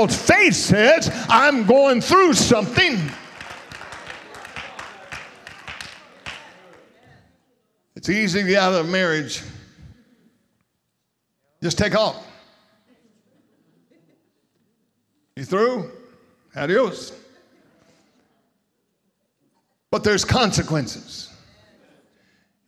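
A middle-aged man preaches with animation into a microphone, his voice echoing through a large hall.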